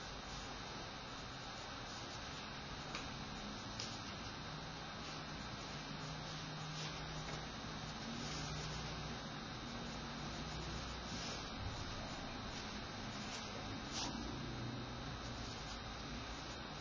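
A man speaks calmly and steadily, close by.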